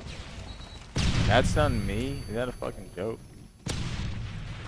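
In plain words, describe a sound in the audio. A man talks into a microphone close up.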